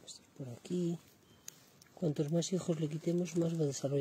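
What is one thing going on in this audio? Leaves rustle as a hand brushes a plant.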